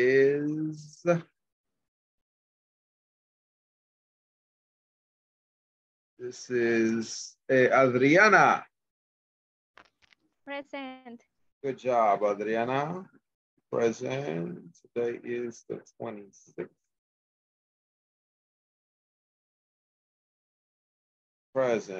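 A middle-aged man with a headset speaks calmly over an online call.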